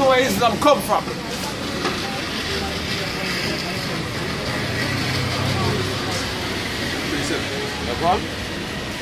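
A group of men murmur together in the background.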